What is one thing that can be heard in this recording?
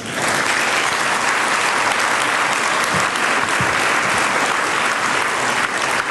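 A large crowd applauds steadily.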